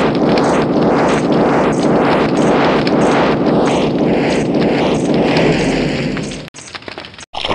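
A flamethrower roars with crackling fire.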